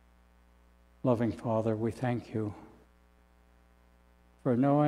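An elderly man speaks calmly into a microphone in a large echoing room.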